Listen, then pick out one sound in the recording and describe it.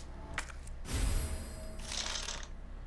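Paper rustles as a map is unfolded.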